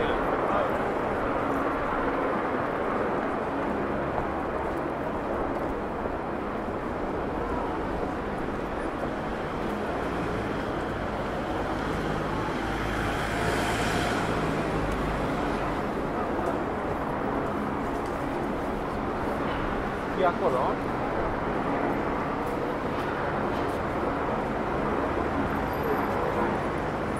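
Footsteps of many people walk on a pavement outdoors.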